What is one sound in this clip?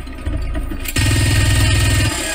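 A rapid-fire gun rattles loudly.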